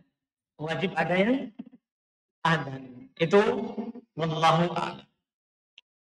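A man speaks calmly into a close microphone, in short phrases.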